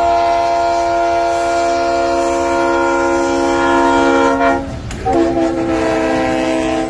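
A train horn blares loudly and drops in pitch as it passes.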